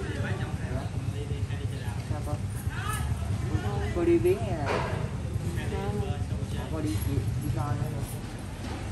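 A young woman answers calmly close by.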